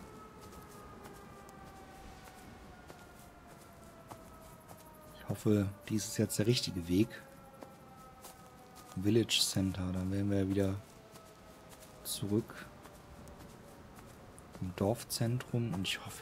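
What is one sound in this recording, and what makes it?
Footsteps crunch softly along a dirt path.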